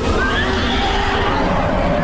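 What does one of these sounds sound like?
A large dinosaur roars loudly.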